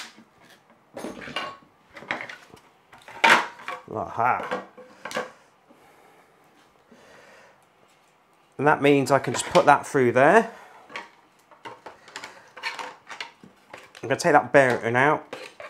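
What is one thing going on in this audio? Plastic parts clatter and knock on a table.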